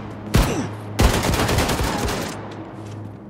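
An explosion bursts with a booming roar.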